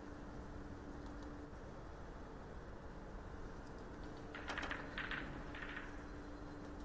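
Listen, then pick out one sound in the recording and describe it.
Billiard balls click softly as they are set down on a table.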